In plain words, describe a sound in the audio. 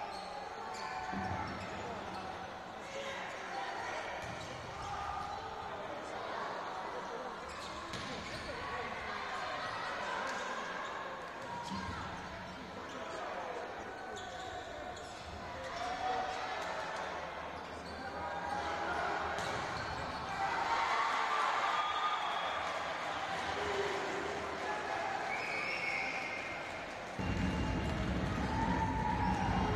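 A volleyball is struck hard again and again.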